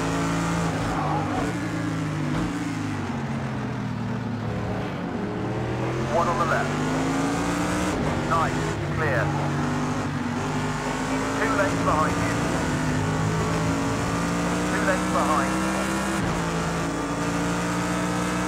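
A racing car engine roars steadily, its pitch rising and falling with each gear change.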